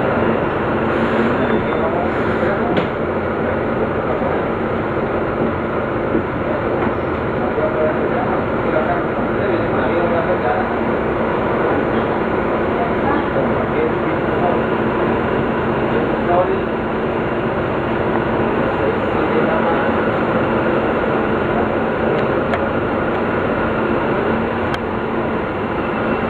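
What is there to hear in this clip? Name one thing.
A bus rattles and rumbles over the road.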